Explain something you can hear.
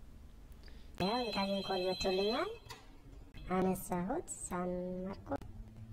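A phone ringtone plays.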